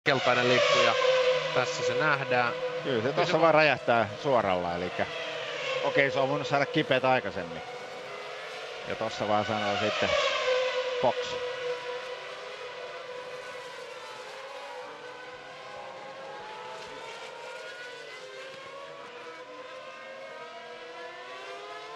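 Racing car engines scream at high revs, rising and falling in pitch as the cars speed past.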